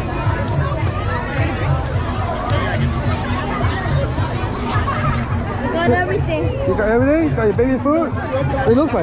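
A crowd of people chatters close by outdoors.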